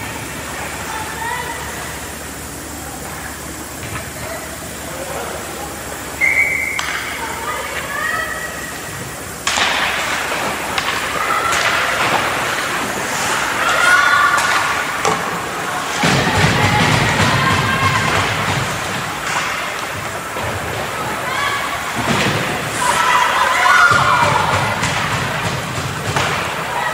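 Skates scrape and hiss across the ice in a large echoing rink.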